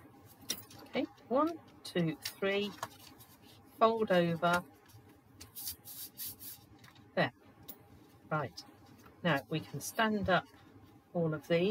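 Stiff paper rustles and crinkles as it is creased and folded.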